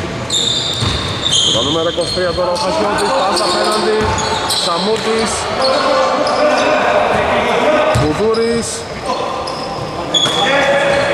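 A basketball bounces with dull thuds in an echoing hall.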